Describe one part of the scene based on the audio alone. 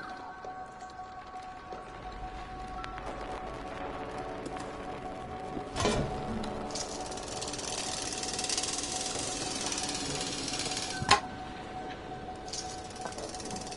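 A metal pulley creaks as a bucket is hoisted on a rope.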